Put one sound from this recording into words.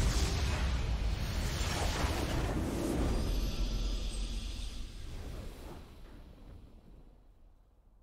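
A triumphant victory fanfare swells, then fades to quiet.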